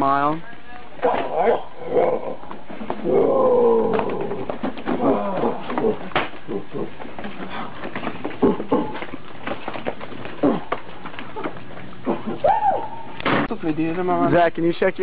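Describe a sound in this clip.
Young men shout and laugh excitedly.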